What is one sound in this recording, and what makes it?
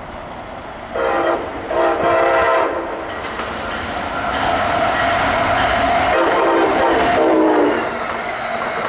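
An electric locomotive sounds its horn.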